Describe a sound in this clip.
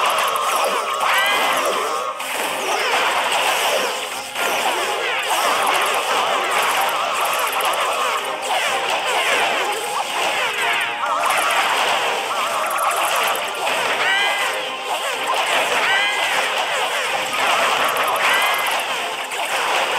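Video game battle effects clash and crackle steadily.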